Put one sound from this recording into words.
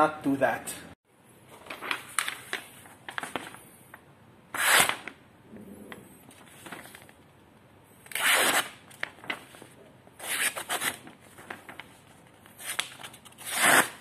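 Sheets of paper flap and rustle close by.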